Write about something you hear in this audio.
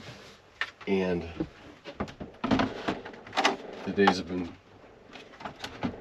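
A plastic case bumps and clatters as it is set down.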